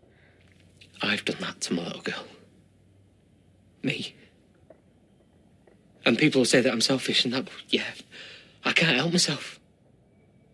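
A man speaks in a low, pained voice, in short bursts with pauses.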